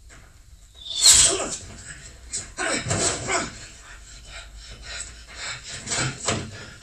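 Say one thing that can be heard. A man cries out and groans in pain close by.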